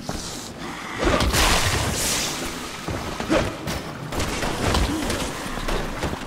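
Heavy blows and thuds land in a close struggle.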